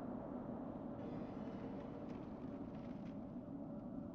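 A magical spell shimmers and crackles as ice forms.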